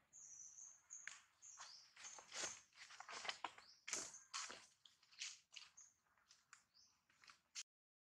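A monkey rustles leaves close by.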